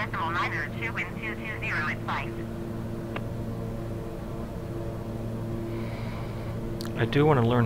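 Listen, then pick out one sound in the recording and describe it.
A steady aircraft engine drones.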